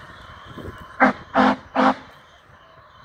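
A steam locomotive's whistle sounds three short blasts in the distance.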